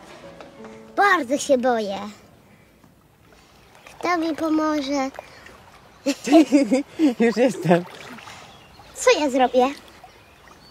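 A young boy speaks close by in a frightened, pleading voice.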